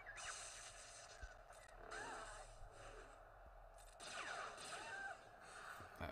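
Laser blasts and lightsaber clashes ring out in a video game battle.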